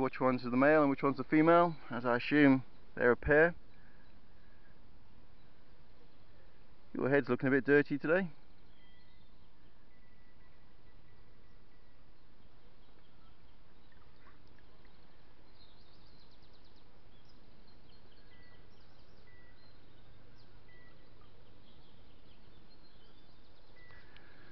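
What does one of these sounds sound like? A swan dips its head and splashes softly in the water.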